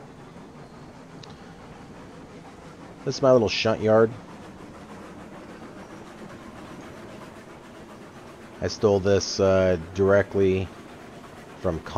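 A steam locomotive rumbles slowly along the rails.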